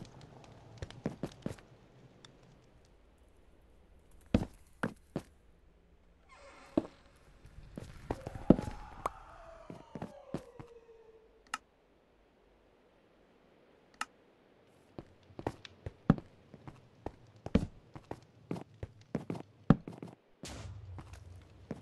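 Stone blocks knock and crunch as they are broken and placed.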